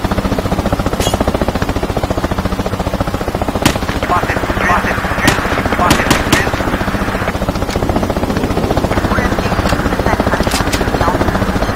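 A rifle fires several sharp single shots.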